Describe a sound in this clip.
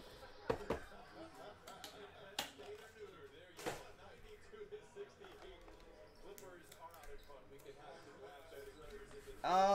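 Cards and plastic sleeves rustle and click in hands.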